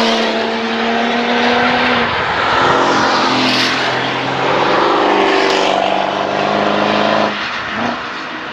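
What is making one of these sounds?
A sports car engine roars loudly as the car accelerates through a bend.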